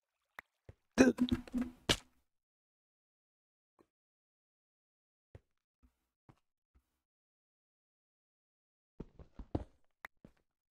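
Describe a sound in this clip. A stone block is chipped and breaks with knocks.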